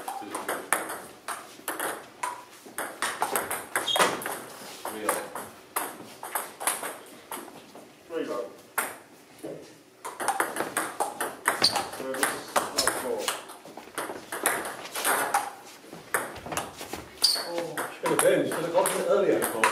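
A table tennis ball clicks rapidly back and forth off paddles and a table.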